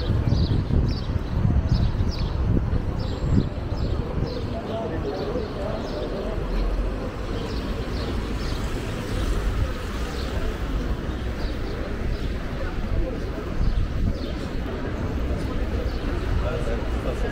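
Footsteps tap on wet pavement.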